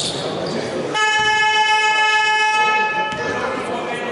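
A referee's whistle blows a long, shrill blast in an echoing hall.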